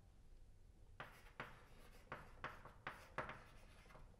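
Chalk taps and scratches on a blackboard in short strokes.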